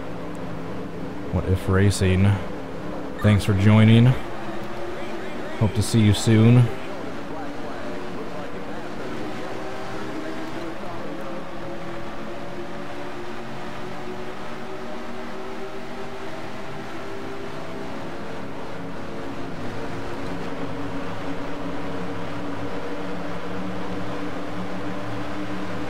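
A race car engine drones steadily and slowly climbs in pitch as it speeds up.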